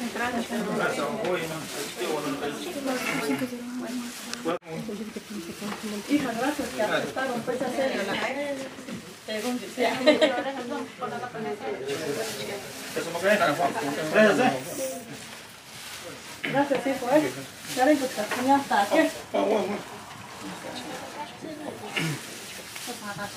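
Several women and men chat close by.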